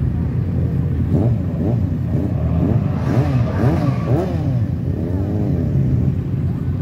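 Motorcycle engines rev up and down loudly.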